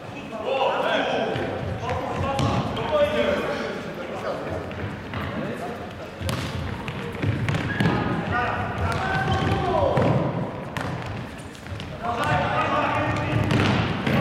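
A ball is kicked with sharp thuds that echo around a large hall.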